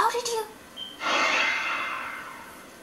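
An eerie rushing whoosh swells and slowly fades.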